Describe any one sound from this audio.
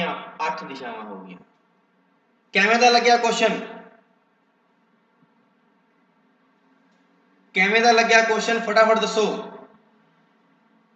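A man speaks calmly and clearly into a microphone, in short bursts with pauses.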